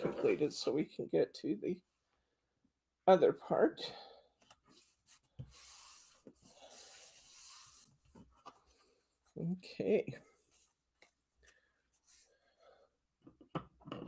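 Paper rustles as it is handled and folded.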